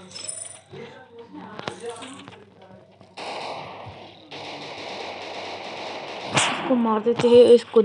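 A pistol fires several shots in quick succession.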